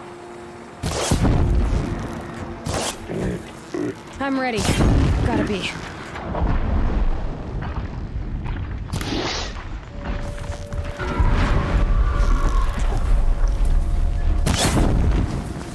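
A bow twangs as arrows are loosed.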